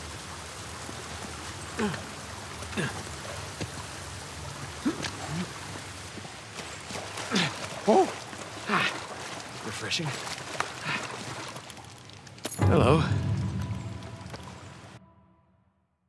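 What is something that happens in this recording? Water rushes and splashes steadily nearby.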